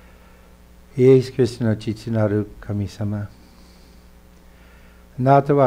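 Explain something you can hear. A middle-aged man speaks calmly and slowly, close by.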